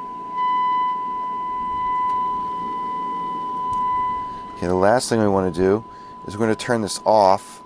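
A steady high-pitched test tone hums from a small loudspeaker.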